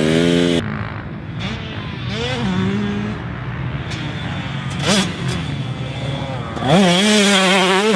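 A dirt bike engine revs and roars, rising and falling in pitch.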